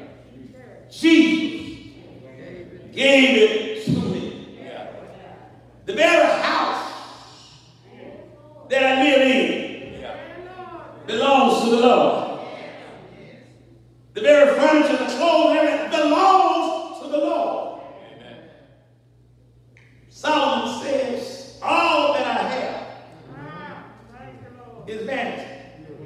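An elderly man preaches with animation through a microphone in an echoing hall, in bursts with pauses.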